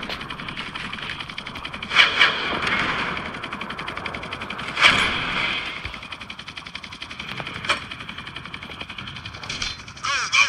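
A helicopter's rotor whirs and thrums steadily.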